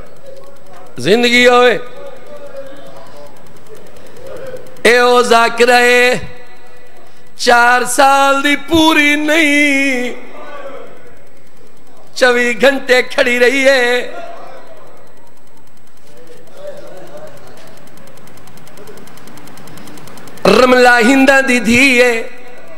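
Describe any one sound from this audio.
A middle-aged man recites with passion into a microphone in bursts, heard through loudspeakers with an echo.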